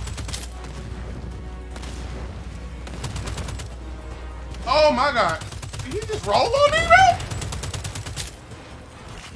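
Gunfire rattles rapidly in a game.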